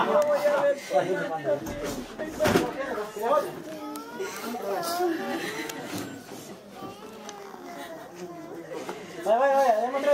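Women wail and sob loudly in a crowd.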